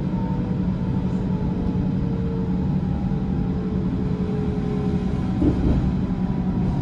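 A train's wheels squeal faintly on the rails.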